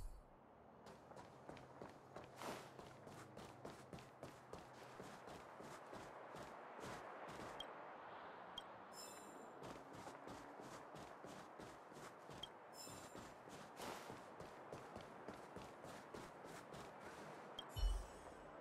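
Quick footsteps run across stone paving.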